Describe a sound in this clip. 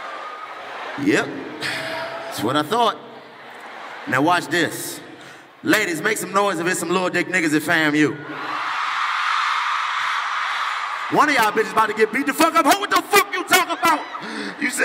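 A man shouts with energy through a microphone in a large echoing hall.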